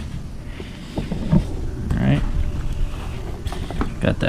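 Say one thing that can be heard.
Small objects knock softly against each other inside a padded case.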